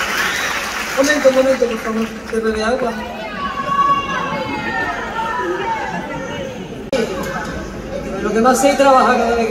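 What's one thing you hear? A woman sings loudly through a microphone and loudspeakers in a large hall.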